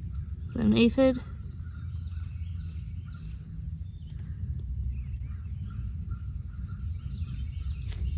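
Leaves rustle softly between fingers.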